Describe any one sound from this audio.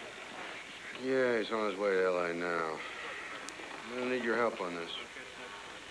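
A middle-aged man talks calmly into a phone.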